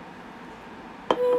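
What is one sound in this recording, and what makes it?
A young woman lets out a short breath after drinking.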